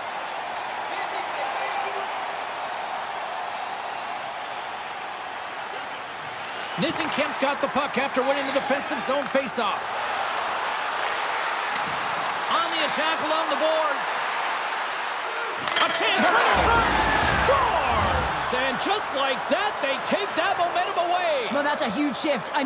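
A large crowd cheers and roars in an arena.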